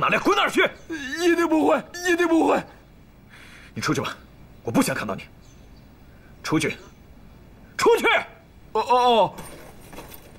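A young man speaks loudly and pleadingly, close by.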